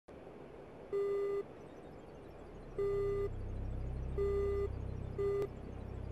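A warning tone beeps in repeated bursts.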